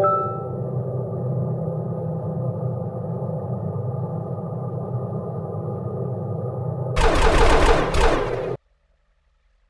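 Game music plays from a small phone speaker.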